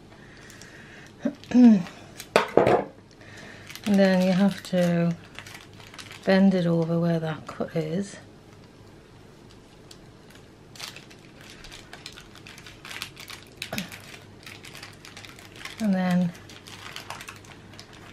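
Baking paper rustles and crinkles as it is peeled away.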